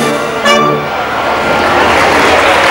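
A brass band plays a sustained chord.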